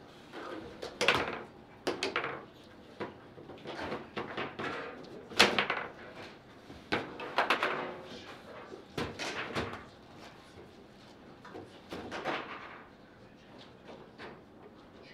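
A hard ball knocks sharply against the walls of a table football game.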